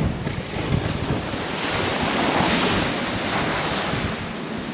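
Sea spray crashes over the bow.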